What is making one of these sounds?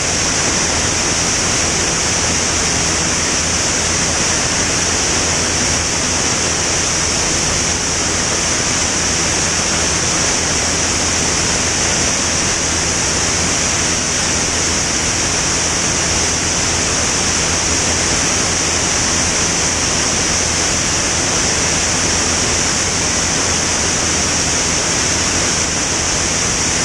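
Wind rushes loudly past the aircraft.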